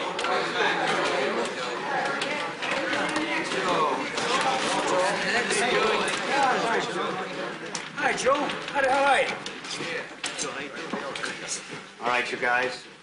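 A crowd of men talk over one another loudly.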